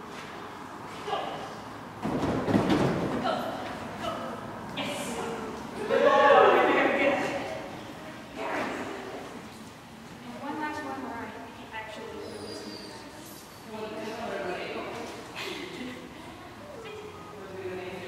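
A man calls out encouragement to a dog in a large echoing hall.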